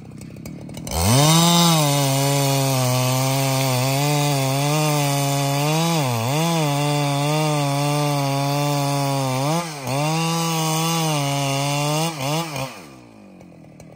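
A chainsaw engine roars steadily as it cuts through a log.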